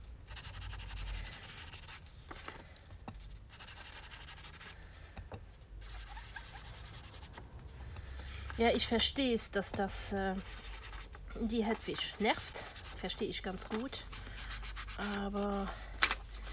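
An ink pad dabs and taps softly on paper.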